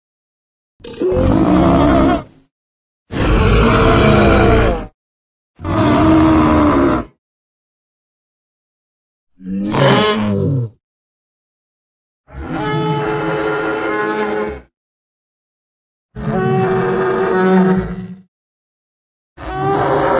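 A large animal gives long, deep, honking calls, with pauses between them.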